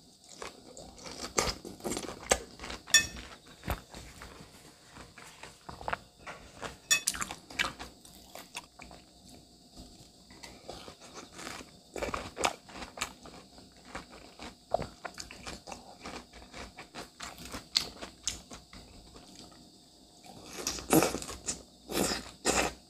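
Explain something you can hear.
A young woman chews and slurps soft fruit close to a microphone.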